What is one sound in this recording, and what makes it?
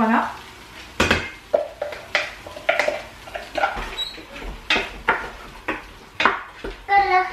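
A spoon scrapes and knocks against a metal pot.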